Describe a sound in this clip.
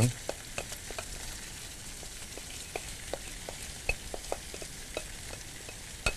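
Rice grains patter and tick as they pour into a metal pot.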